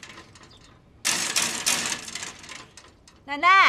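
A metal gate rattles.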